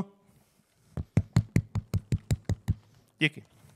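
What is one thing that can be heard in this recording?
A young man beatboxes into a microphone in a quick, steady rhythm.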